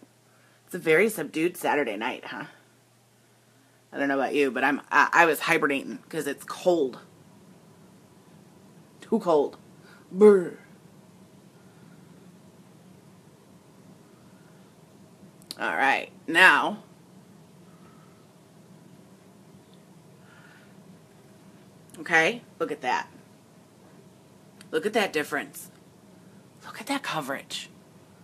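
A young woman talks casually and close up, in short bursts with pauses.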